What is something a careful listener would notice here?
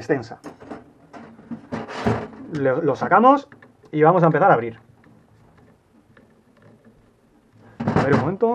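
Small metal parts click and scrape against a metal surface.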